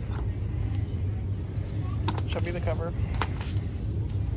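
Paper pages rustle as a book is flipped through by hand.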